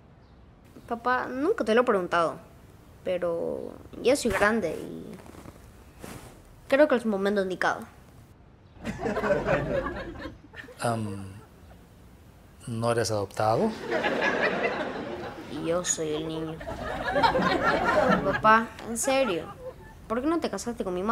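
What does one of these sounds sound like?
A young boy speaks hesitantly, close by.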